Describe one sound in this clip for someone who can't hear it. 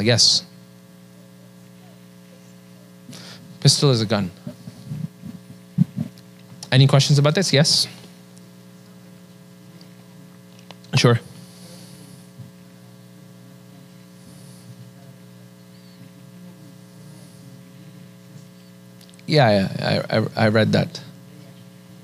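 A man speaks calmly into a microphone in short bursts with long pauses.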